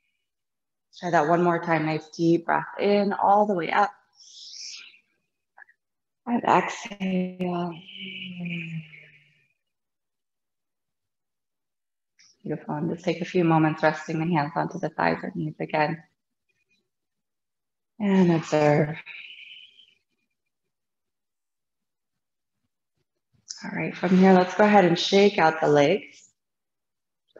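A woman speaks calmly and slowly, close to a microphone, with pauses.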